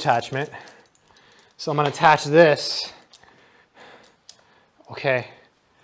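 A metal chain rattles and clinks.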